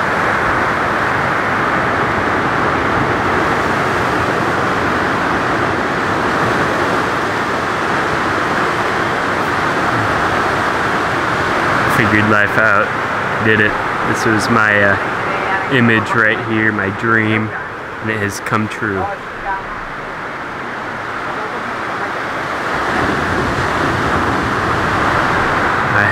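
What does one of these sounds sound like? Waves break and wash steadily onto a nearby shore.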